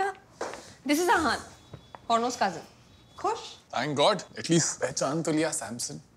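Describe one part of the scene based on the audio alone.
A young man speaks with annoyance close by.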